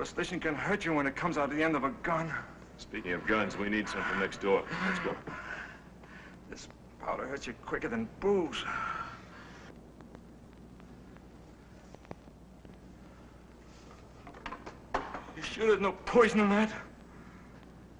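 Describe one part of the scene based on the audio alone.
A middle-aged man speaks tensely and urgently, close by.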